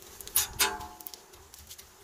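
A metal spatula scrapes across a griddle.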